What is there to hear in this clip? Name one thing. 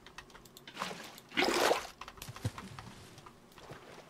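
Water splashes as it is poured out of a bucket.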